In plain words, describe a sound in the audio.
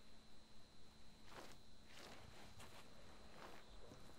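A paper map rustles softly.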